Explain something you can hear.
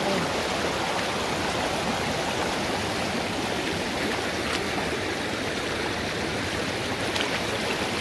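A stream rushes loudly over rocks close by.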